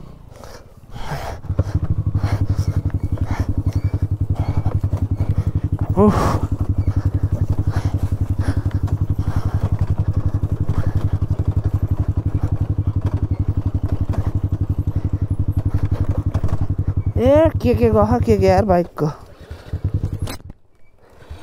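A motorcycle engine thumps steadily at low speed.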